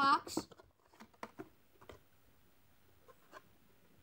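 Plastic packaging crinkles and taps in a boy's hands.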